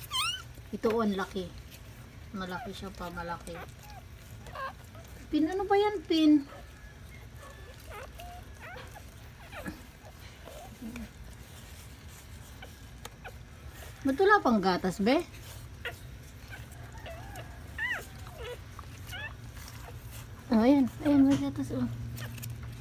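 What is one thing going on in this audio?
Newborn puppies squeal and whimper close by.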